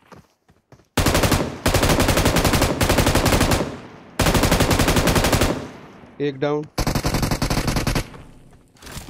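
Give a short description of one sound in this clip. Rapid gunfire bursts out loudly in quick rounds.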